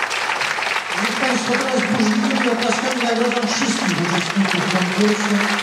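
A band starts playing music on stage.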